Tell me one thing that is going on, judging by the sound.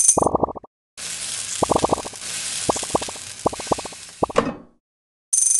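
A sizzling hiss plays as a ball rolls through lava.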